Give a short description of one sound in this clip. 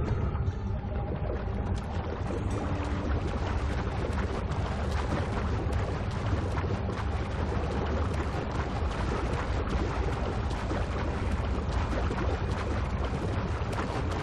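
Water splashes and churns steadily.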